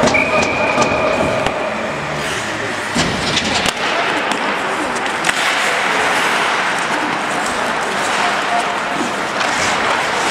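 Skate blades scrape and hiss across ice in a large echoing arena.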